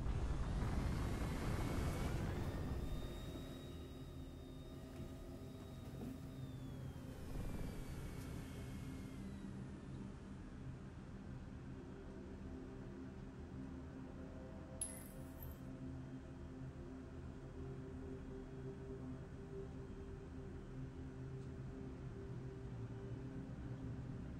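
A spacecraft's engines hum steadily and low.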